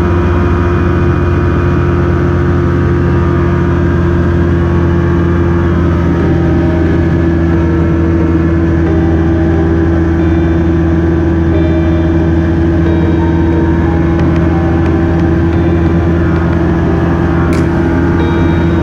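A small plane's engine drones loudly and steadily.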